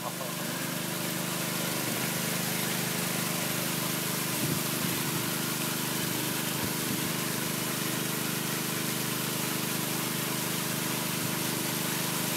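Bare feet squelch and slosh in wet mashed leaves in a tub.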